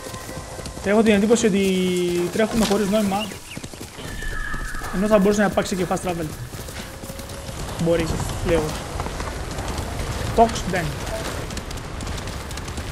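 A horse's hooves gallop steadily.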